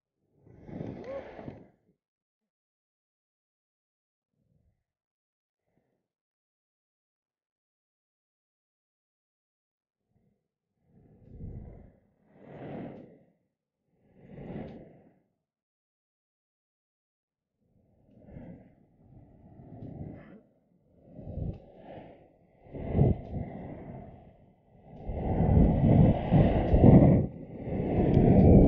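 Skateboard wheels rumble on rough asphalt.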